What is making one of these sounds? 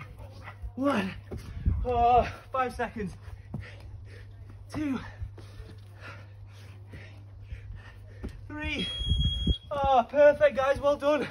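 A man talks with animation, a little out of breath.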